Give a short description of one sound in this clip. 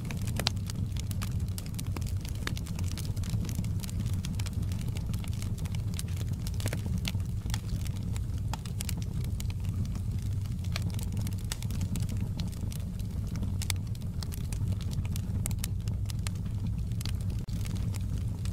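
Burning logs crackle and pop in sharp bursts.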